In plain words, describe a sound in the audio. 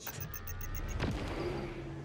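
A powerful energy rifle fires with a sharp crack.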